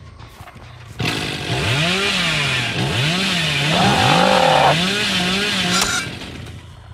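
A chainsaw revs loudly, its engine rising and falling in rapid surges.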